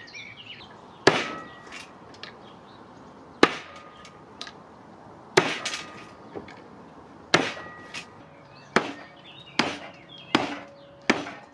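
Nut shells crack and scatter.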